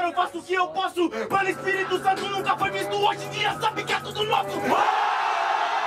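A young man raps loudly and aggressively at close range.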